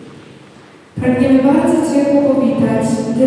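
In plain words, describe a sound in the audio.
A young woman speaks into a microphone over loudspeakers in a large echoing hall.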